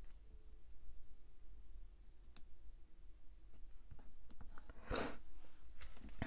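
Paper rustles softly under fingers.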